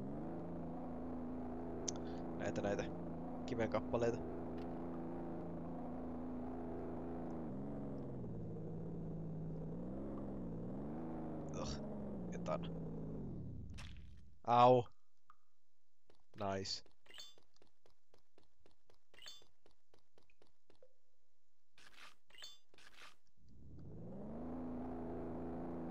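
A small boat motor hums steadily, rising and falling slightly in pitch.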